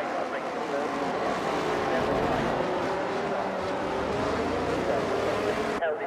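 Racing car engines whine loudly at high revs.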